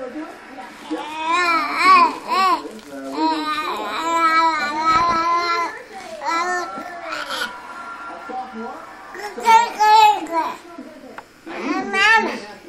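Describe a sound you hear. A toddler babbles and squeals up close.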